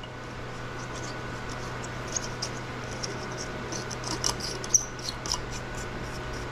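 A light bulb scrapes and squeaks as it is screwed into a socket.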